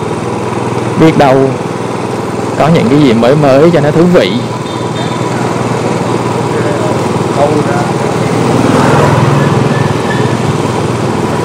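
A scooter engine hums steadily at low speed.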